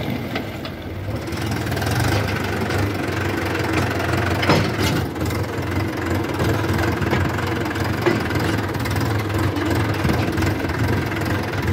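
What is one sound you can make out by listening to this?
A tractor's diesel engine chugs steadily up close.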